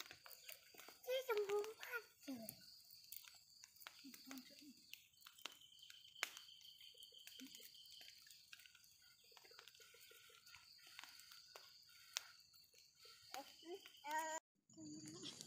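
A small child babbles and cries out nearby.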